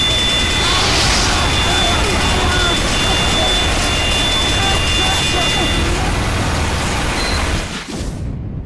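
A heavy machine gun fires in a fast, rattling stream.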